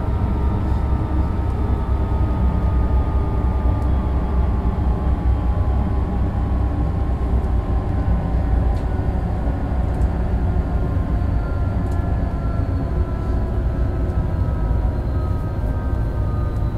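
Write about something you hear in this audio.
An electric train rumbles steadily along the rails.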